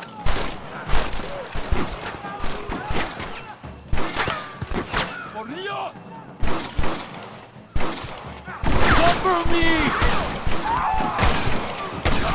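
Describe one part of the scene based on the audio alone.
Gunshots crack repeatedly and echo.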